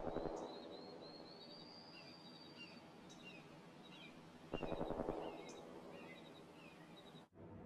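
Soft electronic blips tick quickly as a score counts up.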